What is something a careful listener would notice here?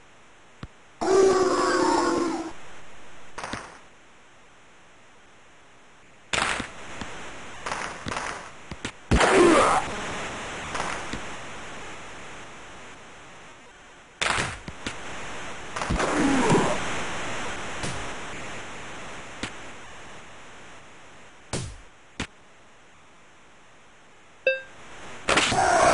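A crowd in an arena roars and cheers in bursts.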